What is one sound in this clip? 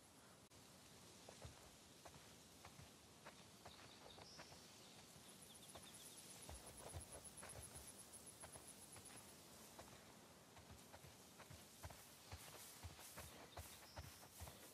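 Footsteps swish through tall dry grass.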